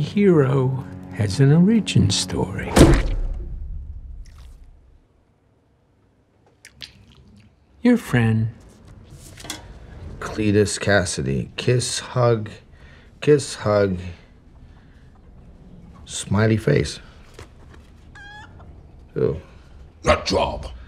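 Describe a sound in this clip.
A man speaks in a low, rough voice, with pauses.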